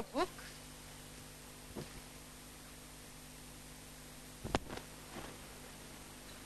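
A woman speaks calmly in short bursts, close by.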